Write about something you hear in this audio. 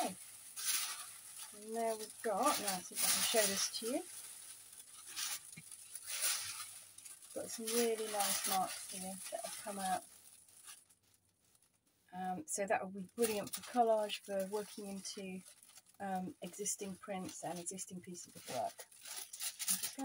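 Paper crinkles and rustles as a large sheet is peeled up and lifted.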